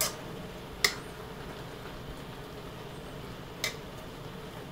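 A fork clinks against the side of a metal pot.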